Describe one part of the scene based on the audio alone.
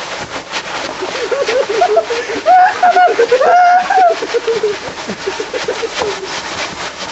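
Young men shout and whoop loudly close by.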